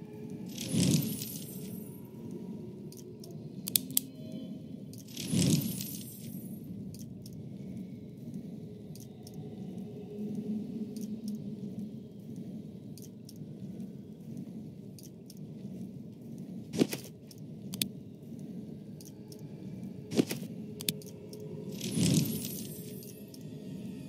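A magical sparkling shimmer rings out.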